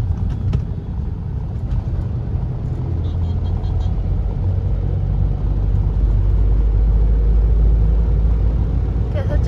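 A car engine hums steadily from inside the cabin, growing louder.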